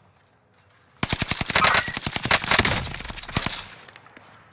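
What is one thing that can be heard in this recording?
A rifle fires rapid shots in a video game.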